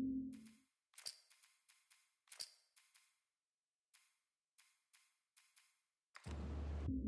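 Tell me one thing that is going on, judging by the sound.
Menu selection clicks tick several times in quick succession.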